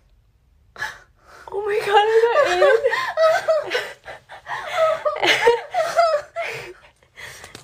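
A young woman screams and shrieks with excitement.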